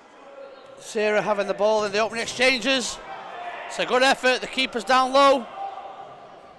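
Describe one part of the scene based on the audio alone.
Players shout to each other in an echoing indoor hall.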